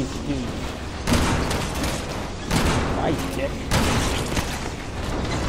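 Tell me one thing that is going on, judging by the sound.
Gunshots ring out sharply.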